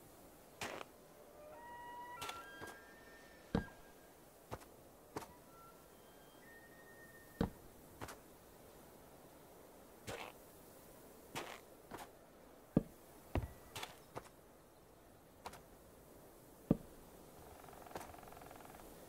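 Wooden blocks are placed and broken with short, sharp knocks.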